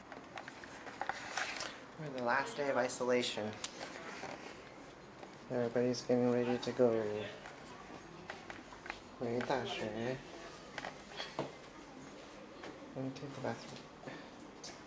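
A young man talks close by, in a lively way.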